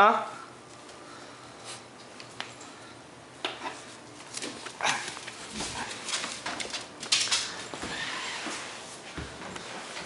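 A puppy scrabbles and tugs at a soft toy.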